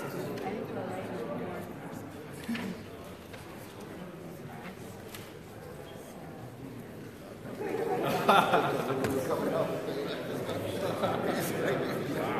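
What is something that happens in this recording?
A middle-aged man speaks into a microphone in an echoing hall.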